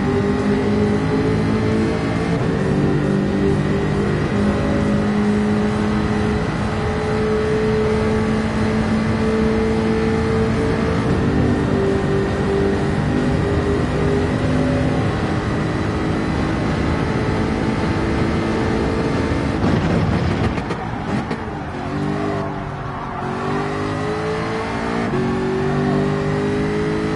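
A race car engine roars at high revs, shifting gears as it speeds along.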